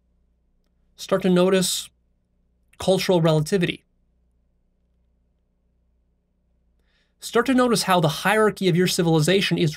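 A young man speaks calmly and closely into a microphone, in short phrases with pauses.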